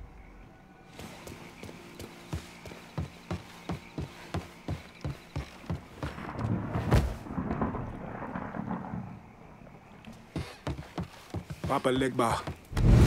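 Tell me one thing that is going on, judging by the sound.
Footsteps thud on wooden boards at a run.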